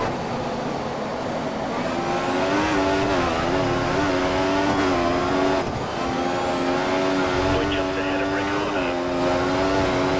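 A racing car engine screams at high revs, climbing in pitch and dropping sharply at each gear change.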